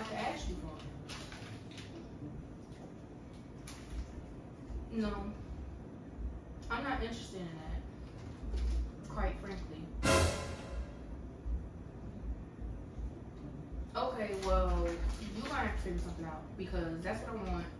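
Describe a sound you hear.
Another young woman talks calmly nearby.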